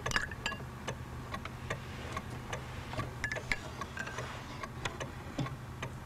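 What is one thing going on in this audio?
False teeth drop with a plop into a glass of water.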